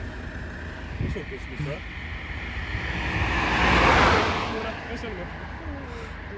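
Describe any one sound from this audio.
A car approaches and rushes past on the road.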